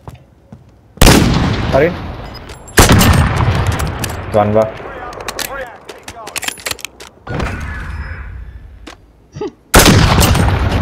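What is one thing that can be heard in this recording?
A rifle fires loud, sharp shots that echo away.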